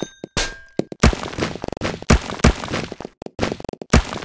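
Wooden blocks crack and break apart.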